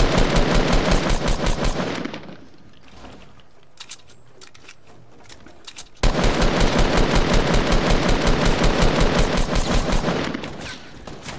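Rapid bursts of gunfire crack in quick succession.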